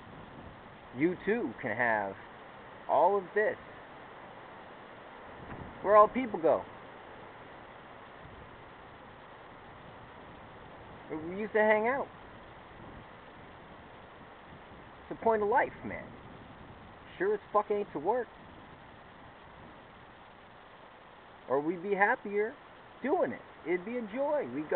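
A young man speaks close to a phone microphone in short bursts with pauses.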